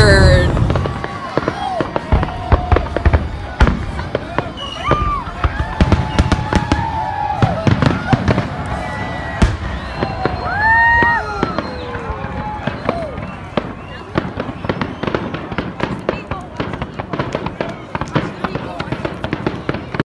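Fireworks bang and boom one after another.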